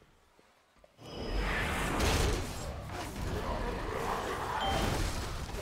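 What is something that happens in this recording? Spell effects crackle and roar in a fierce game battle.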